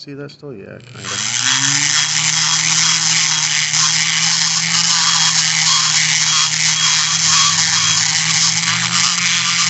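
A small power tool whirs steadily against metal.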